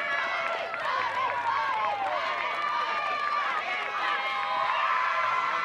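A group of young women cheer and scream excitedly close by.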